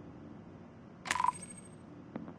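A bright game chime rings as a task completes.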